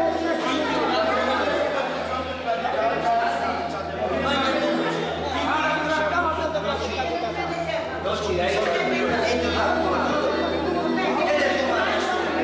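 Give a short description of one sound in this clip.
A man sings loudly through a microphone and loudspeakers.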